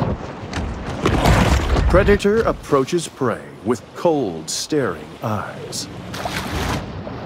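Water splashes at the surface as a large fish swims through it.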